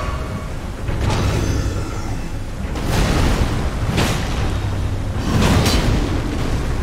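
A large sword swings and strikes heavily with whooshing impacts.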